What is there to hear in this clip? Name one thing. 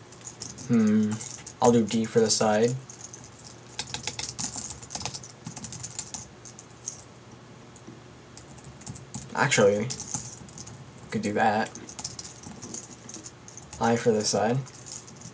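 Keys on a keyboard click as someone types.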